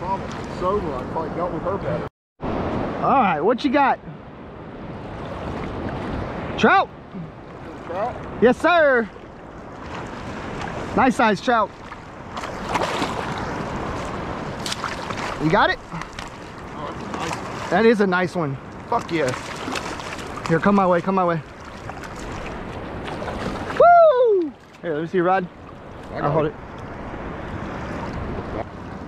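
Small waves lap and slosh around close by.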